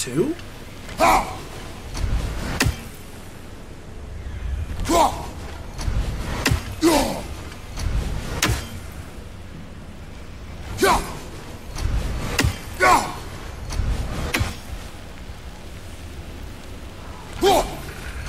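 An axe whooshes through the air as it is thrown, again and again.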